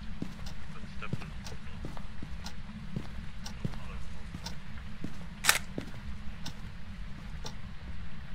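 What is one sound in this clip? Footsteps thud on a carpeted floor nearby.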